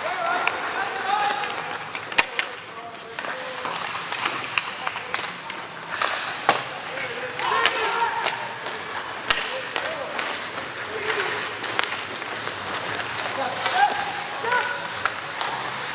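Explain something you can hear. Young players shout to each other across the ice.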